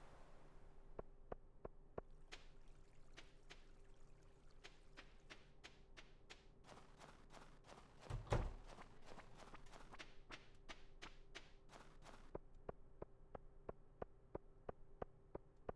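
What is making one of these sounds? Footsteps crunch steadily on snow and then tap on stone.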